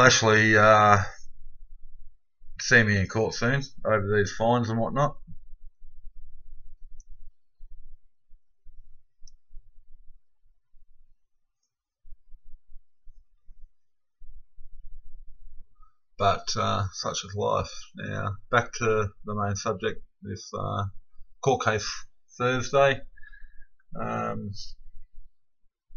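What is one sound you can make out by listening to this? A middle-aged man speaks calmly and slowly, close to a microphone, with long pauses.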